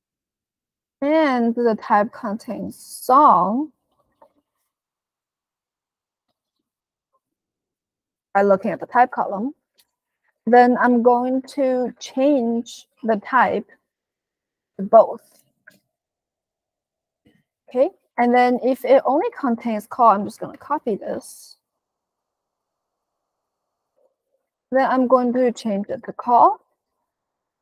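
A young woman talks calmly into a close microphone, in bursts with pauses.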